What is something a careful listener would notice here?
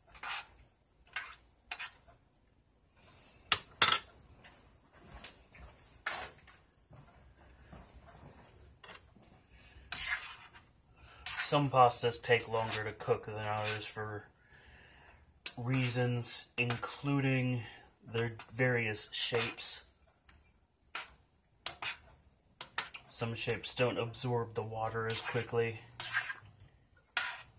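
A metal spoon stirs pasta in a metal pot.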